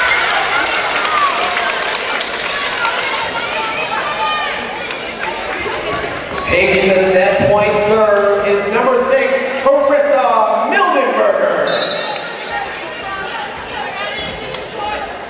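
Young women shout and cheer across an echoing gym.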